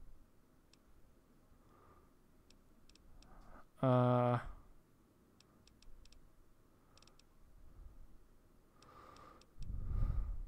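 Soft menu clicks tick in quick bursts as a list is scrolled.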